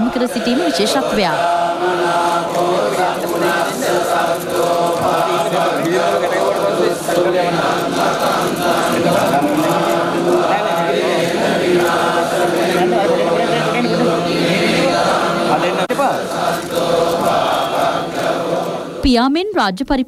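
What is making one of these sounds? Men chant together slowly in low voices over a loudspeaker.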